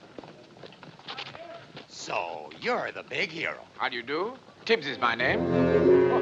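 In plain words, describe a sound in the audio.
A man speaks in a low, firm voice close by.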